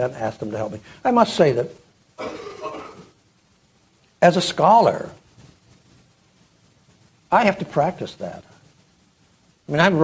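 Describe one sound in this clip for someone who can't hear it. An elderly man speaks calmly through a microphone with pauses, in a large room with some echo.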